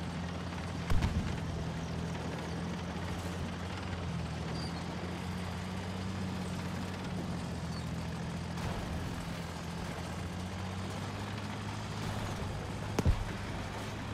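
Distant explosions boom sharply.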